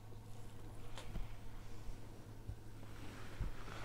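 A paint cup is set down on a table with a light knock.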